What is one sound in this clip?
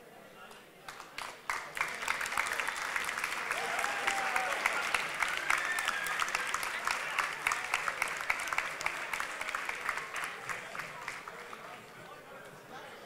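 A crowd claps and cheers in a room.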